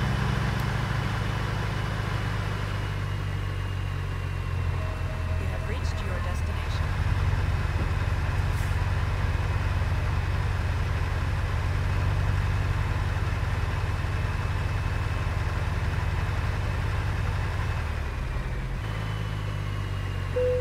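Tyres crunch over a gravel road.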